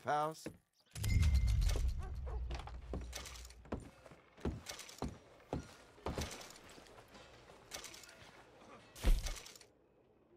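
Boots thud on wooden boards.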